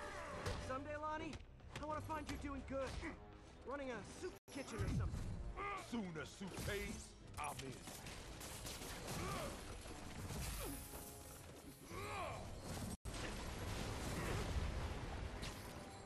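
Fire bursts with a loud whoosh.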